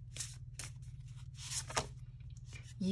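Playing cards slide and rustle against each other.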